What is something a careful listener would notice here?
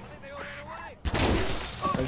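An energy weapon fires with a loud burst.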